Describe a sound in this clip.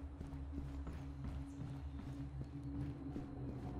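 Footsteps thud on wooden stairs and floorboards.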